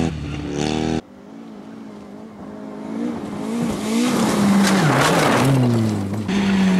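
A rally car engine approaches, revving loudly and roaring close by.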